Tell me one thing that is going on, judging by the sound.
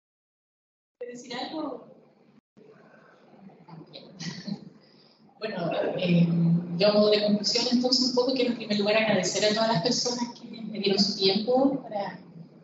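A woman speaks calmly into a microphone, heard over loudspeakers in a large room.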